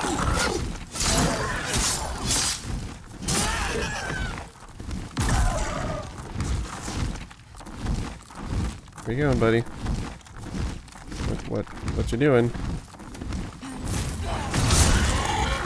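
Fire bursts and roars in loud crackling blasts.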